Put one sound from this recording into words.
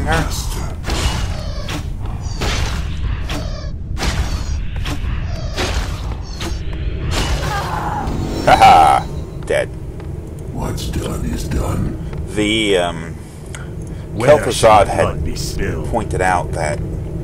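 Magic bolts zap and crackle again and again in a fight.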